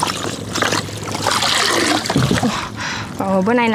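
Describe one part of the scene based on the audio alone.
Water splashes and drips from a lifted net.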